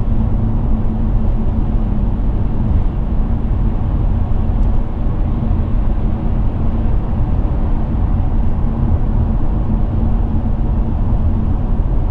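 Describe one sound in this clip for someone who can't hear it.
Tyres roar on a motorway road.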